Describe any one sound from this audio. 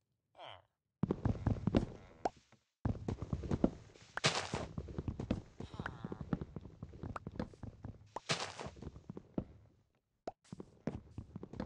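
An axe chops wood with repeated knocks.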